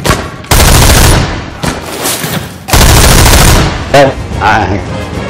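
A rifle fires several loud, sharp shots at close range.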